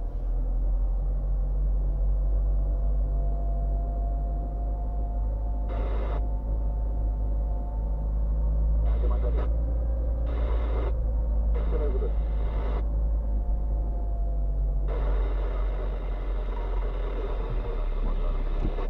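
A car engine hums steadily from inside the car as it drives slowly.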